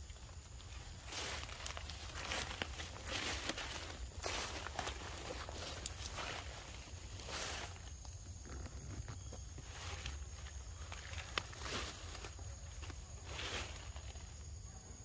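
Leaves rustle in the breeze.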